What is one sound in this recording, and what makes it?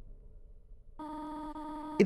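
A rapid series of soft electronic blips sounds as dialogue text types out.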